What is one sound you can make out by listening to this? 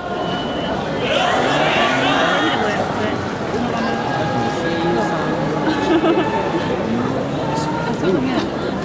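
A crowd murmurs and cheers outdoors.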